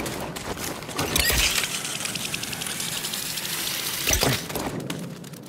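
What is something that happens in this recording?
A cable hums and whooshes as someone slides down a zip line.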